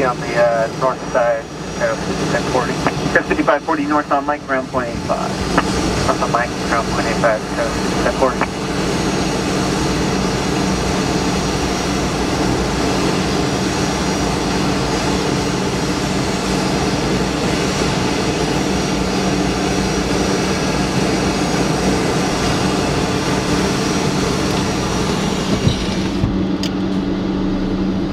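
A parked jet's engine hums and whines steadily nearby.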